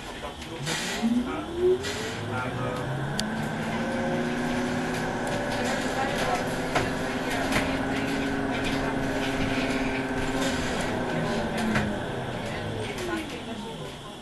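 An electric tram's motor whines, rising in pitch as it speeds up and falling as it slows.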